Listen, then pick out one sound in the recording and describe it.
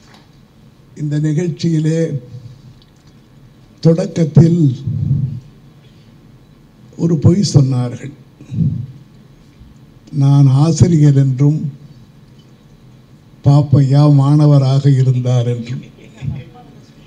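An elderly man speaks calmly and with pauses into a microphone, heard over a loudspeaker.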